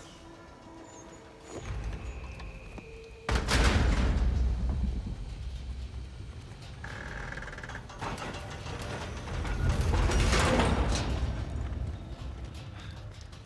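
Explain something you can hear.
Metal clanks and thuds as a climber pulls up a rusty metal structure.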